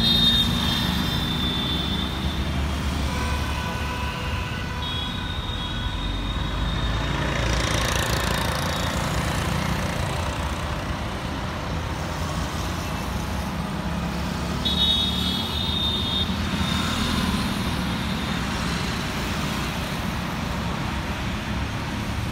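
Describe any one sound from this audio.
Motorcycle engines buzz past close by.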